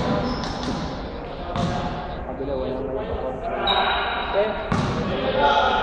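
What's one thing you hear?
Young men chatter in a large echoing gym.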